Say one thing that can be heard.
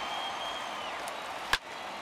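A wooden bat cracks against a baseball.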